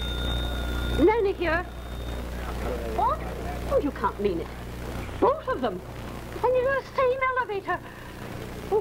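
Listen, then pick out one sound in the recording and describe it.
A woman speaks anxiously into a phone.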